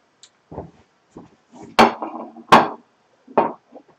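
A plate clatters onto a stone counter.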